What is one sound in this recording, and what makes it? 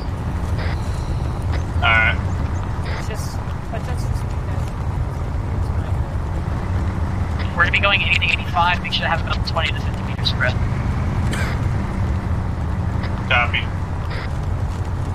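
A vehicle engine rumbles steadily while driving.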